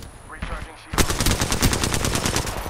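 A rifle fires a fast, rattling burst.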